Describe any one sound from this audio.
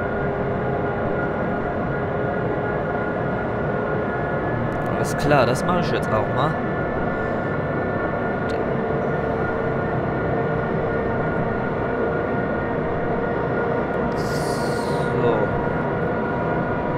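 A train rumbles steadily along the rails from inside the cab.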